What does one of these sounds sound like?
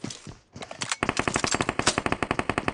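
A rifle fires in a rapid burst of shots.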